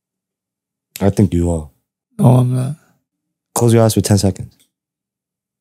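A young man speaks into a close microphone with animation.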